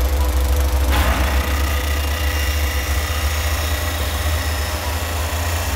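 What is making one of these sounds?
Metal grinds harshly.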